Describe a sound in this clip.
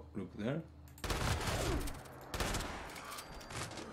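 A shotgun fires loudly a few times.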